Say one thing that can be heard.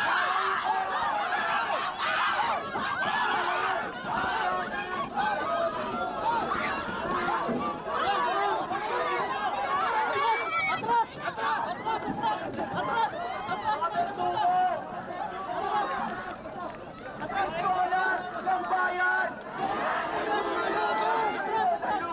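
A crowd of men and women shouts and chants loudly close by.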